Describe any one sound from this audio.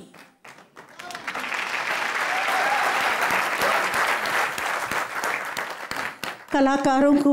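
An audience applauds and cheers.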